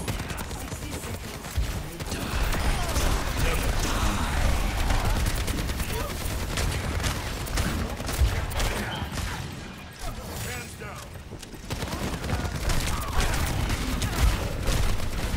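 Explosions boom and crackle nearby.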